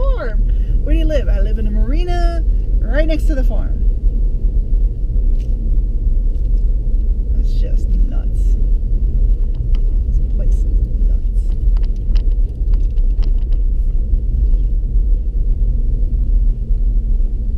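Tyres rumble over a paved road.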